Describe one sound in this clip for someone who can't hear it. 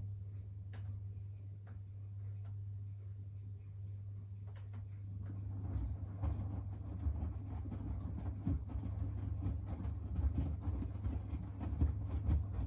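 A washing machine motor hums steadily.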